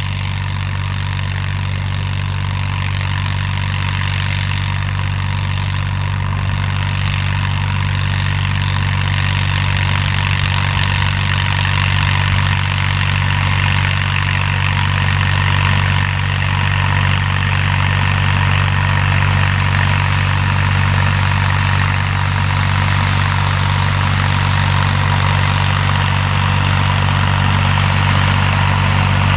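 A tractor engine hums steadily and grows louder as it approaches.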